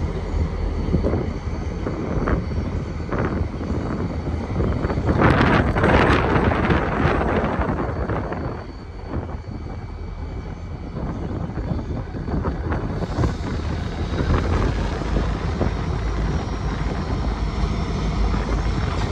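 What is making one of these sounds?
Train wheels clank and squeal on the rails.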